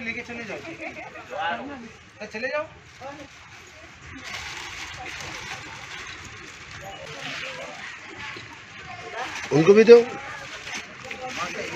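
Plastic bags rustle as they are handed over.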